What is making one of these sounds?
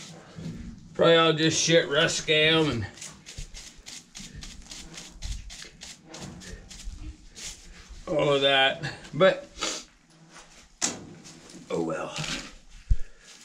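A man speaks close by in short phrases.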